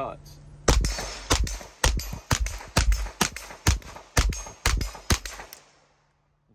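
A shotgun fires rapid, loud blasts outdoors, each echoing off nearby hills.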